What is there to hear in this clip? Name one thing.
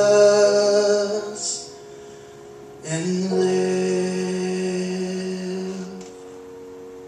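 A man sings long, held notes into a microphone through loudspeakers in an echoing hall.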